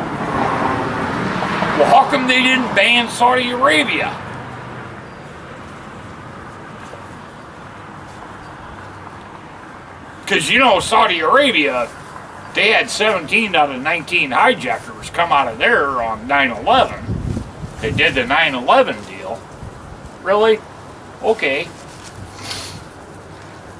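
An elderly man talks calmly nearby, outdoors.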